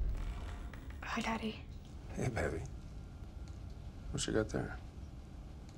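A man speaks quietly and menacingly.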